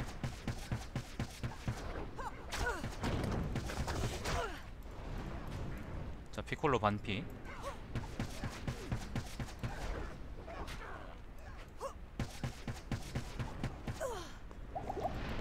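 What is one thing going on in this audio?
Spell effects burst and whoosh repeatedly.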